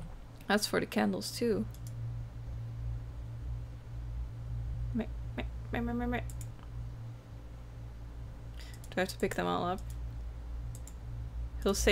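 A young woman speaks calmly into a close microphone, in short bursts.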